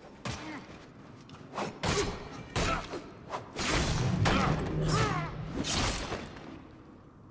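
A man grunts and shouts while fighting.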